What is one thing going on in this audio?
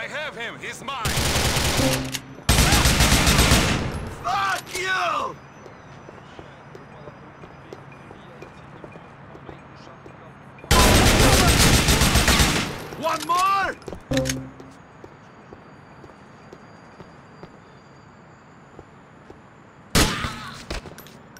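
Gunfire rattles in loud bursts, with single shots between.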